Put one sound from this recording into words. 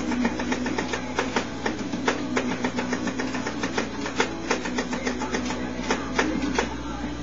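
Rock music with steady drum beats plays from a television loudspeaker in the room.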